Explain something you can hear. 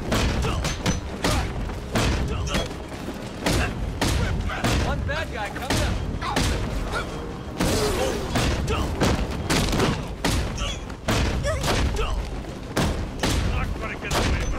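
Punches and kicks land in a fast brawl, with heavy thuds.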